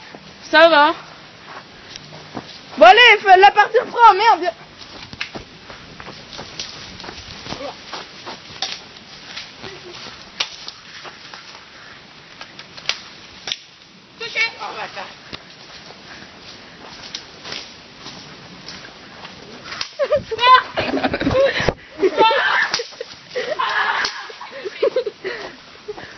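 Footsteps crunch and rustle quickly through dry leaves.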